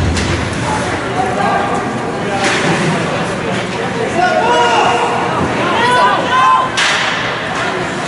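Men shout and call out across an echoing rink.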